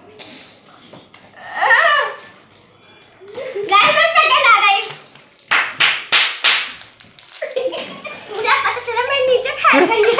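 Young girls laugh loudly.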